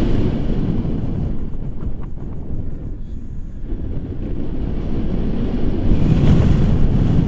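Wind rushes and buffets loudly past a microphone.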